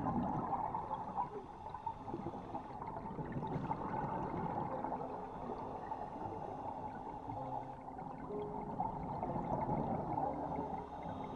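Scuba breathing bubbles gurgle and rush steadily underwater.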